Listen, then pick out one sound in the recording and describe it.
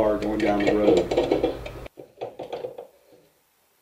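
A metal brake disc scrapes as it slides onto a wheel hub.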